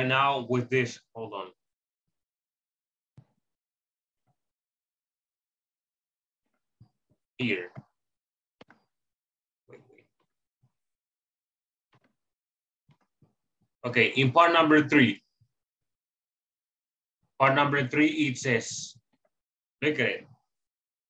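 A man speaks in short bursts through an online call.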